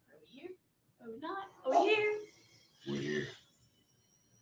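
A young woman laughs and exclaims through a microphone.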